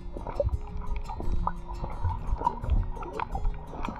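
Swimmers kick and splash with fins nearby.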